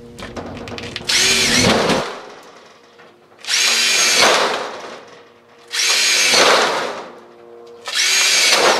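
A handheld power tool whirs loudly in short bursts.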